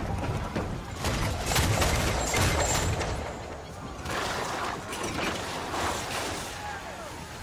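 Cannons fire in heavy booming blasts.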